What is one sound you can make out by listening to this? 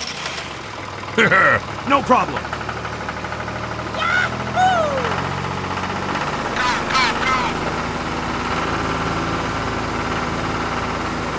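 A small toy motor whirs steadily.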